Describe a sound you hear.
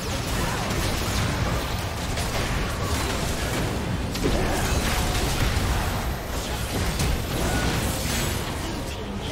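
Spell effects blast and crackle in a busy video game battle.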